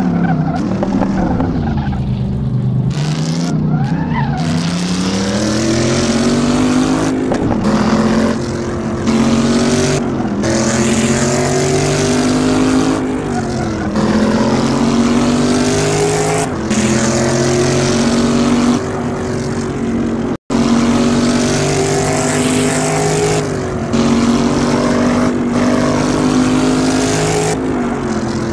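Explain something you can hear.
A race car engine revs hard, rising in pitch through each gear and dropping briefly at every shift.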